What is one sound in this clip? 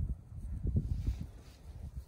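A cow tears at dry grass while grazing.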